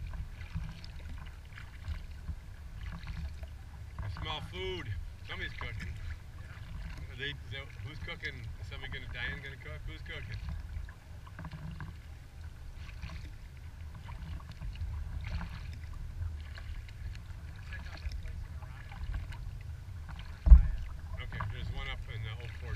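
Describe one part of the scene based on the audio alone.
Small waves lap and splash against a kayak's hull.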